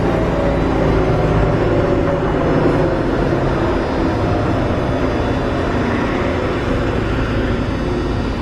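A tram hums and rumbles steadily as it rolls along the rails.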